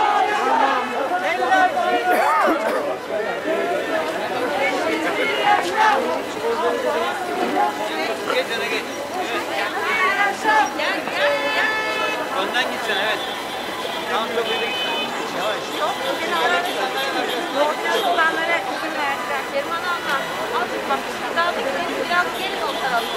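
A crowd of marching men and women chants and talks loudly outdoors.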